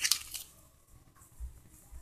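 A hand squishes and mixes crumbly dough.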